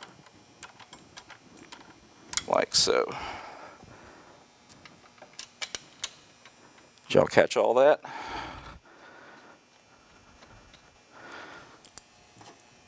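Metal tools click and rattle against a brake caliper.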